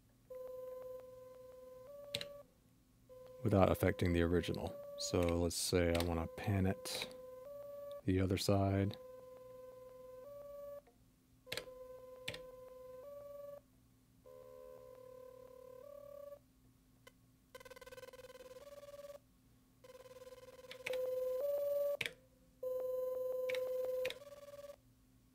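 A synthesizer plays short steady electronic tones, changing pitch now and then.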